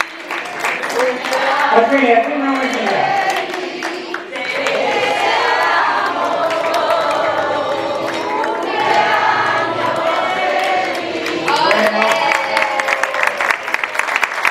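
A woman sings loudly through a microphone.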